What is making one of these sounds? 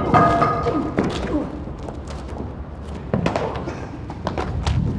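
Blows land with sharp slaps.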